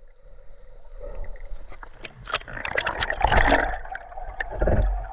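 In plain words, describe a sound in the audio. River rapids roar over rocks.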